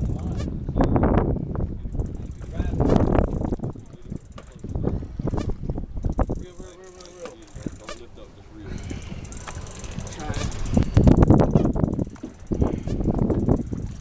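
Waves slap and splash against a boat's hull.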